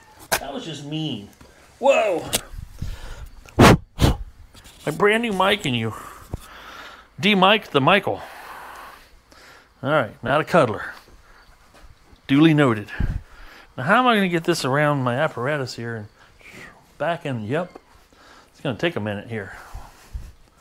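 A middle-aged man talks with animation, close to a microphone.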